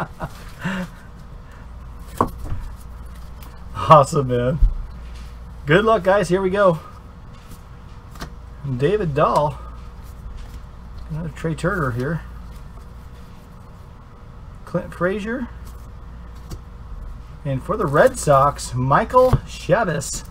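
Trading cards rustle and slide softly as they are handled.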